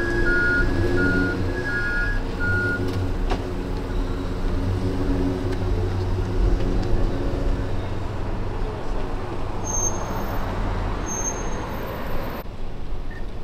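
A van engine rumbles as the vehicle drives slowly away.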